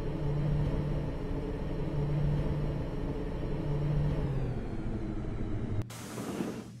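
An elevator hums steadily as it rides, then stops.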